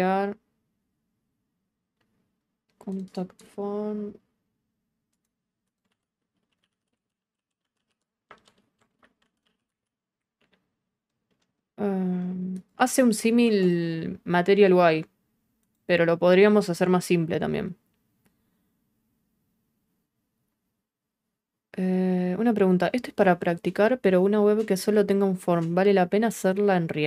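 A young woman talks calmly and close into a microphone, in short bursts with pauses.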